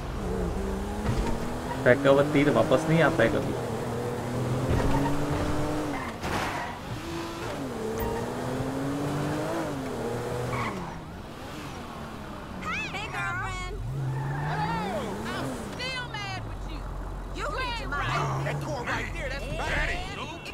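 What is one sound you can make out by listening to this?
A car engine revs up and down as a car drives.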